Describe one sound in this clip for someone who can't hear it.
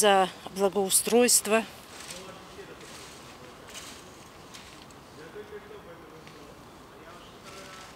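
A rake scrapes and rustles through dry leaves.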